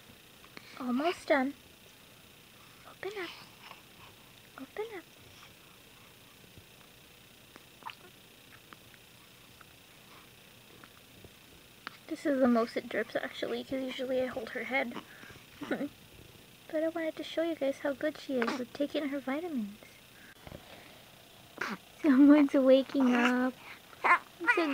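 A newborn baby whimpers and fusses close by.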